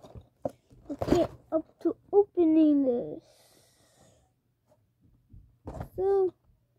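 A cardboard box rattles in a boy's hands.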